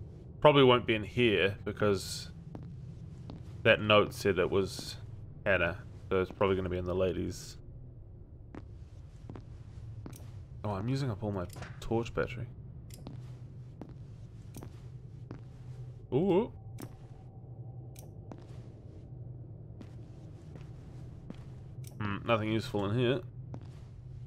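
A young man talks into a close microphone, in bursts.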